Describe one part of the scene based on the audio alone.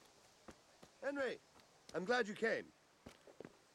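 A man speaks calmly, heard close.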